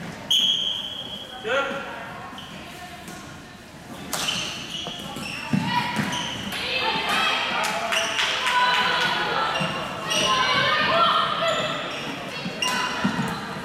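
Players shout to each other across a large echoing hall.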